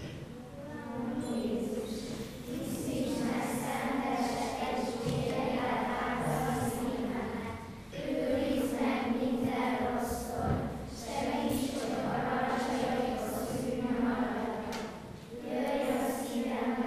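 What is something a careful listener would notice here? A group of children sings together in an echoing hall.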